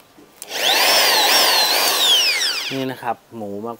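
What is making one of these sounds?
An electric drill whines at high speed as it bores into wood, its pitch rising and falling.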